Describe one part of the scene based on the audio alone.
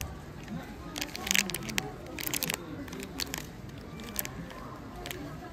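Plastic packaging crinkles and rustles in a hand.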